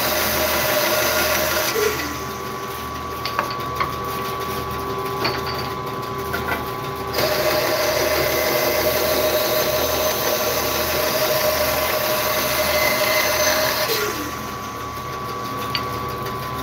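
A band saw motor hums steadily.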